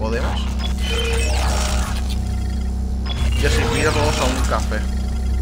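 Electronic beeps and chirps sound from a terminal.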